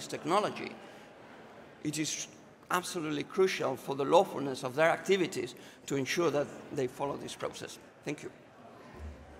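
A man speaks with animation into a microphone in a large hall.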